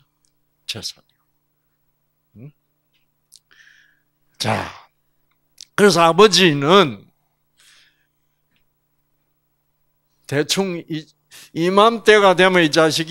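An elderly man speaks with animation through a microphone and loudspeaker, in short bursts with pauses.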